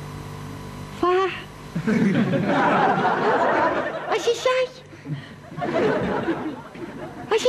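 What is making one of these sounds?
A man talks with animation, close by, in a playful voice.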